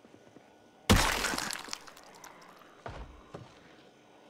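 A body thuds heavily onto a floor.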